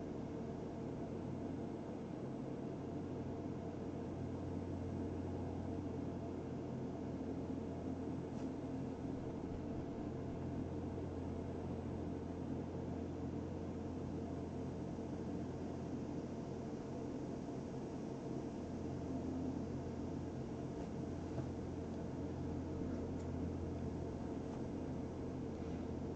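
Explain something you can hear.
A low, steady ambient music drone plays.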